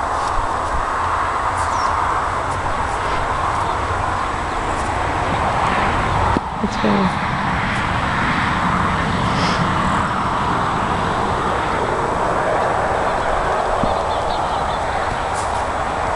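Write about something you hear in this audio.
Wind blusters outdoors across the microphone.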